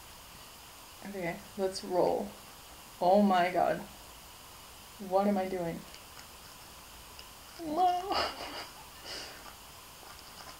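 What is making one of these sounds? A young woman speaks calmly and close by, in short bursts.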